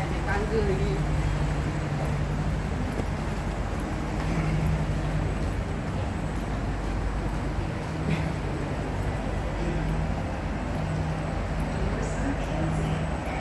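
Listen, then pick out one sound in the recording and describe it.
A train hums steadily while standing at the platform, in a large echoing hall.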